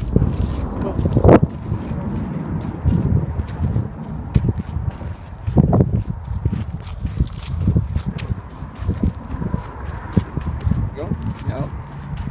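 Footsteps crunch on dry, brushy ground outdoors.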